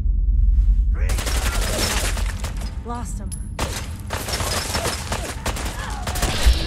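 Guns fire in rapid bursts, echoing off hard walls.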